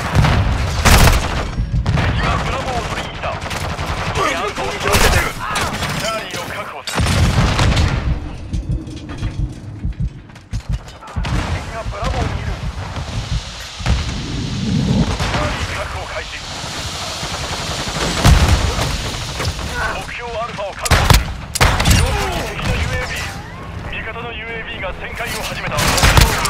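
A revolver fires sharp shots.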